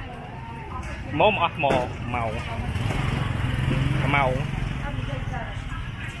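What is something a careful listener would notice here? A motorbike drives past.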